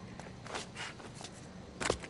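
A man scrambles over a brick wall.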